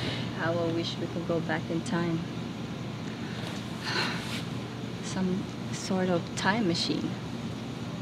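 A young woman speaks in a sulky, annoyed voice nearby.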